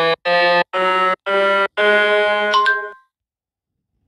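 A piano plays a few short notes, one after another.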